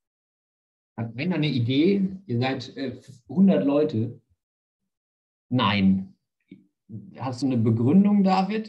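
A young man speaks calmly into a close microphone, as if on an online call.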